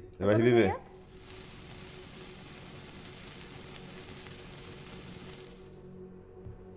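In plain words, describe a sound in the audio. Magic sparkles hiss and shimmer steadily.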